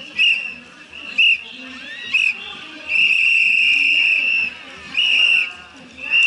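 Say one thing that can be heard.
A crowd of spectators murmurs outdoors.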